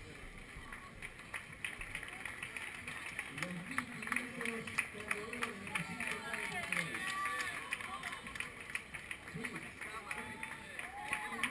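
A crowd of spectators claps and cheers.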